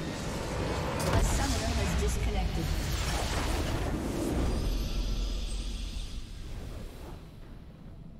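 A game explosion booms and rumbles, then slowly fades.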